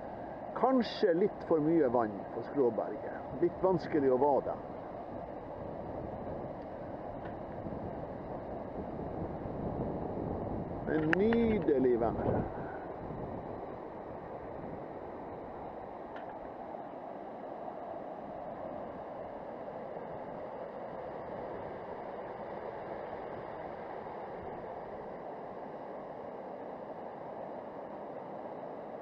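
A fast river rushes steadily over rocks close by.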